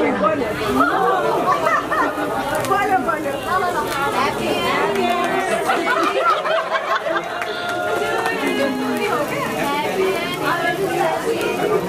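A sparkler fizzes and crackles.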